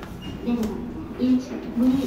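Buttons click under a finger.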